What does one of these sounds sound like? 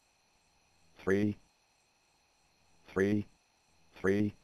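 A game menu makes short, bright pitched blips.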